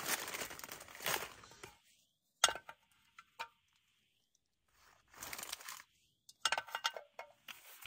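Water trickles from a bottle into a metal pan.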